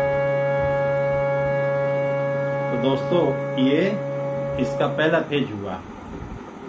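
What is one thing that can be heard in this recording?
A harmonium plays a steady held chord.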